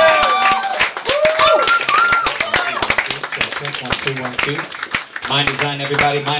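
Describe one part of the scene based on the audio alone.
Hands clap sharply among the crowd.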